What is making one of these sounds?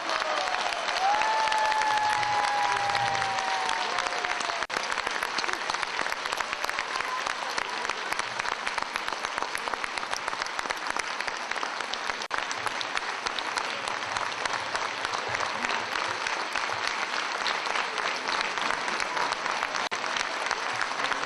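A large audience claps loudly and steadily in a big echoing hall.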